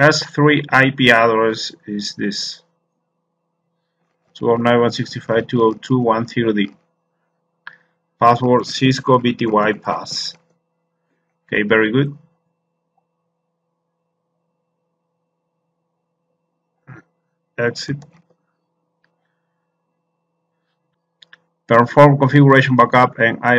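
A man talks calmly and closely into a microphone, in short bursts with pauses.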